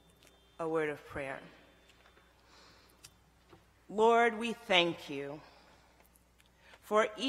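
A woman speaks slowly and deliberately into a microphone, in pauses.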